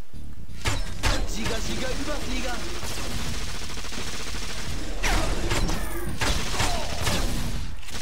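Blows and weapon strikes clash in a fight.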